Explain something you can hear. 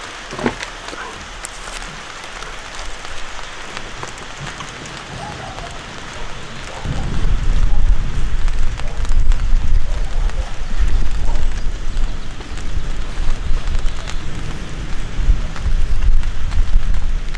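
Hands rustle through a pile of roasted meat.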